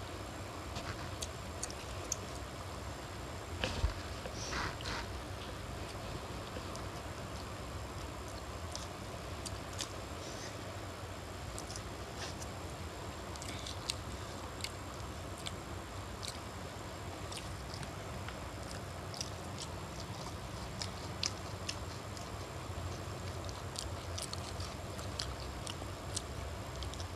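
A boy and a young woman chew and smack their lips loudly close by.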